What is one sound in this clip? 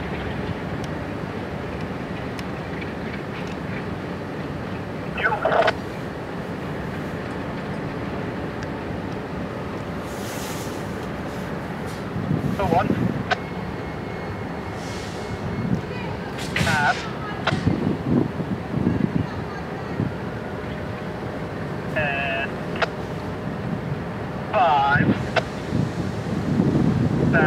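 Diesel locomotives rumble as they roll slowly past.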